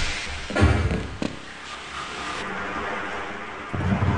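Water splashes as someone drops into it.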